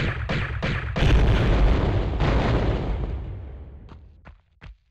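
An explosion booms and slowly fades.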